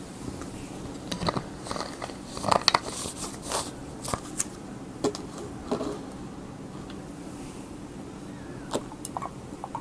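A young man speaks softly and close to the microphone.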